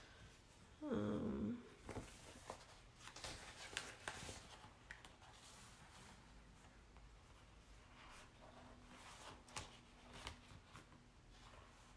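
Paper rustles and slides as sheets are shuffled by hand.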